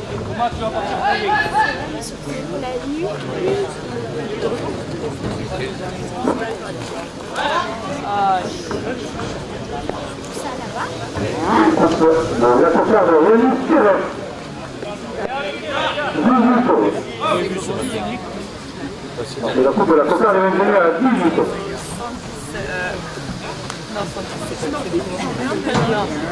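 A crowd of spectators shouts and cheers outdoors in loud bursts.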